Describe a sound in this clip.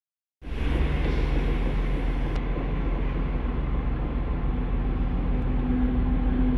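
A diesel locomotive rumbles steadily as it draws closer.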